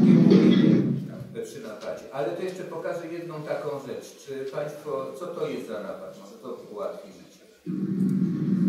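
An older man speaks calmly into a microphone in a large room.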